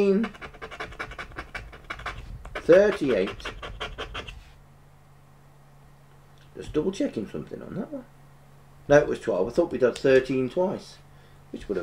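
A man talks casually and close to a microphone.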